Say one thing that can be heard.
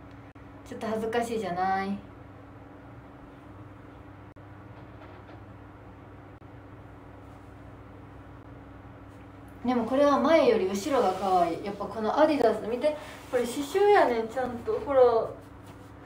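A young woman speaks with animation, close to the microphone.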